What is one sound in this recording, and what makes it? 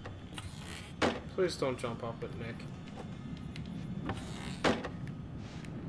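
Wooden shutters swing and bang shut.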